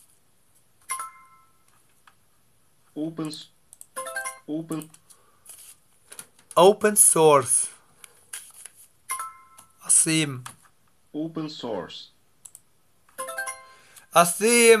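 A short electronic chime sounds from a computer a few times.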